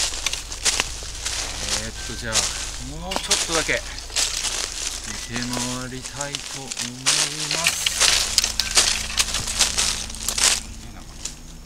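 Footsteps crunch through dry fallen leaves.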